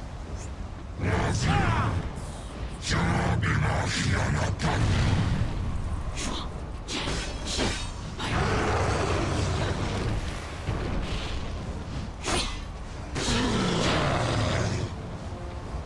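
Heavy blows crash and rumble as a giant creature attacks.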